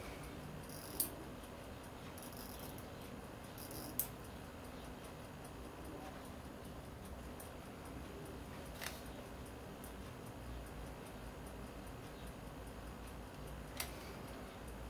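Small metal watch parts click sharply now and then as they are handled.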